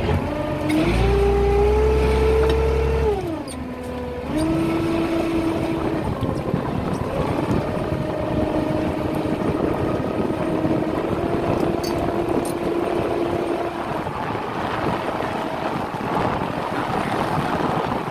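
A boat engine rumbles throughout.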